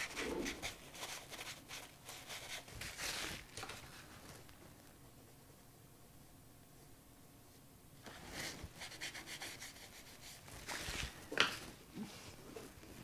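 A paper tissue rustles and dabs against paper.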